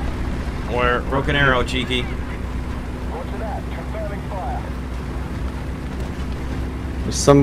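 A tank engine rumbles low and steady as the tank rolls along.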